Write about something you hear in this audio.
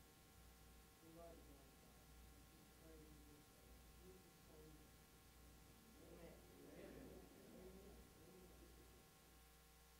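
A man prays aloud in a calm, low voice.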